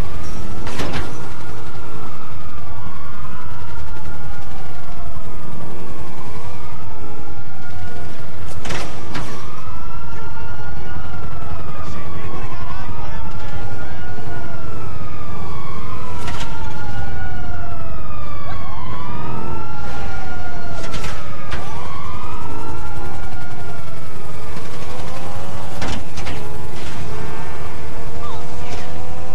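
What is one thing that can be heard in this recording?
A motorcycle engine roars steadily.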